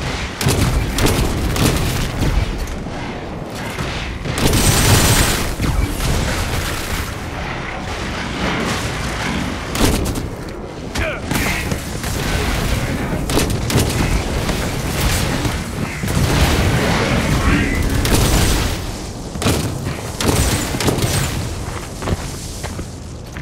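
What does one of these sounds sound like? Gunfire crackles in a game battle.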